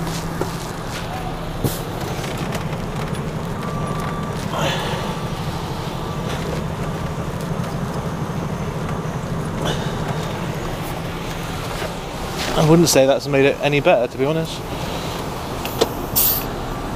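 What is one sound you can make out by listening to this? A lorry engine idles with a steady low hum.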